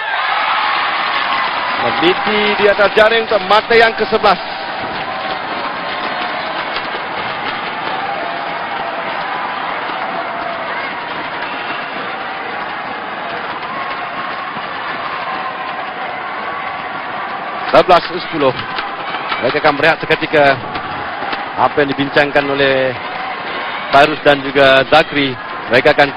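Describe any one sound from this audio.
A large crowd cheers and roars in an echoing hall.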